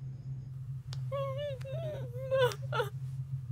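A young woman sobs and wails nearby.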